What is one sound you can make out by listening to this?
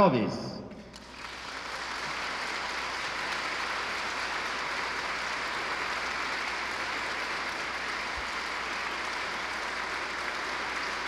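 A large crowd applauds steadily in a large hall.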